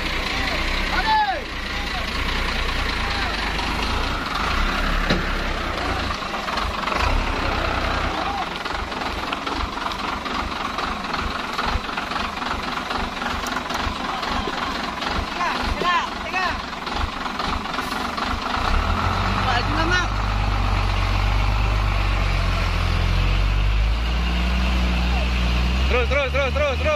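A truck engine idles nearby with a low rumble.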